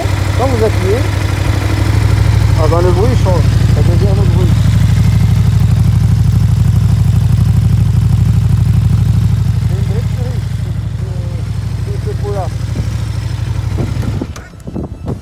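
A motorcycle engine idles with a steady low rumble, then cuts off.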